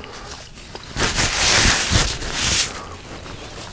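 A man blows his nose loudly into a tissue.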